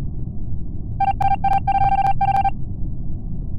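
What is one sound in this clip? Quick electronic blips tick out in a rapid burst.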